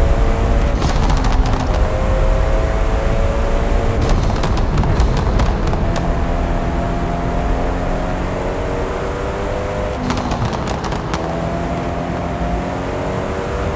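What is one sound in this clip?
A powerful sports car engine roars at high speed, its pitch rising and dropping with gear changes.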